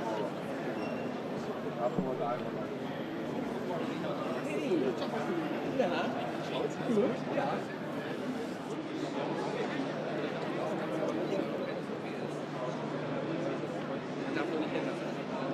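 A crowd of people chatter all around.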